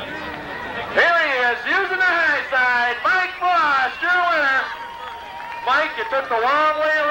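A man speaks with animation into a microphone, heard over a loudspeaker.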